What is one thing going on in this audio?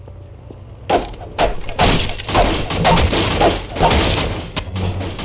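Wooden boards crack and splinter apart.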